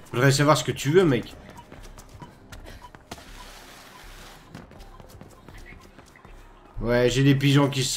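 Footsteps run quickly across a hard rooftop.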